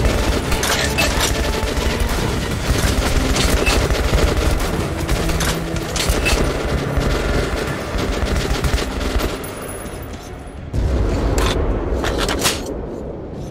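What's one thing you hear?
Gunshots crack and boom in rapid bursts.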